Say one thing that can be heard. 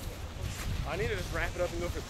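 A young man talks casually nearby, outdoors.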